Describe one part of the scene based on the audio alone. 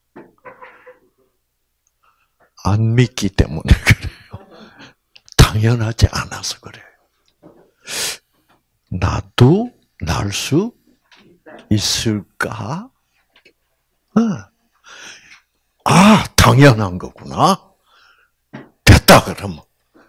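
An elderly man speaks calmly through a microphone, with pauses between phrases.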